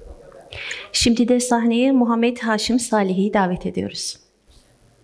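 A woman speaks loudly through a microphone.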